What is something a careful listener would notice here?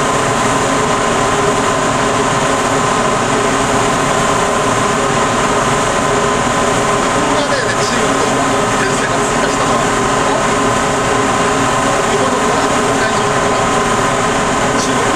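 Water rushes past a moving boat.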